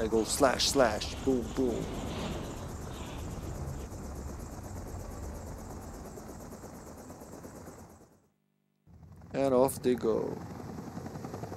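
A young man speaks briefly into a headset microphone.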